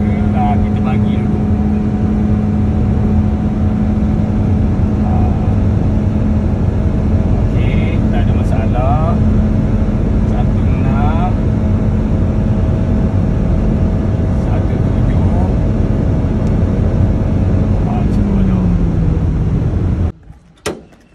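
A car engine hums steadily with road noise inside a moving car.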